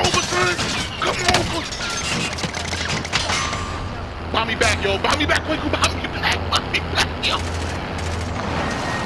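Explosions boom and gunshots crack repeatedly.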